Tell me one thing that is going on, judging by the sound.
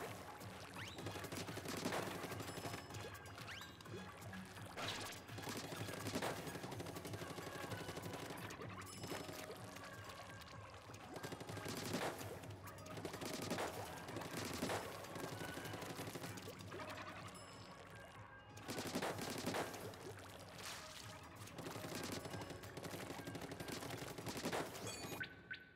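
Ink guns splat and spray in quick bursts.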